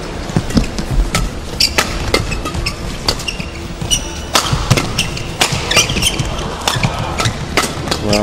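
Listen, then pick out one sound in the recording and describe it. Rackets smack a shuttlecock back and forth in a quick rally.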